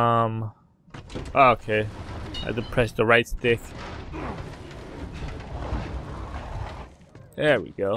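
A heavy wooden shelf scrapes across a wooden floor.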